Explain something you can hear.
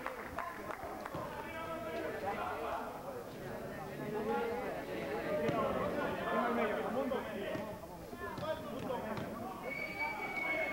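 A crowd of men chatter and shout nearby.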